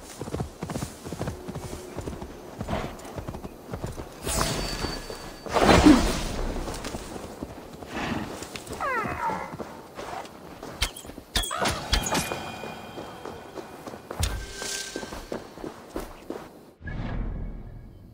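Hooves thud on soft grass at a steady walk.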